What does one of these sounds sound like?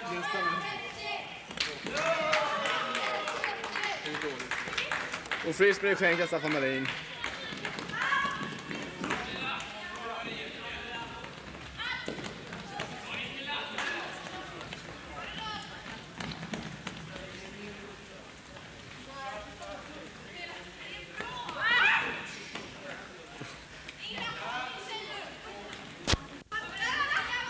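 Voices of young players call and shout across a large echoing hall.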